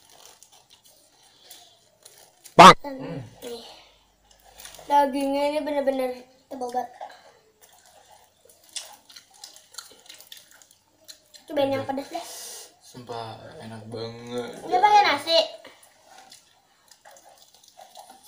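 A young man chews food with smacking sounds.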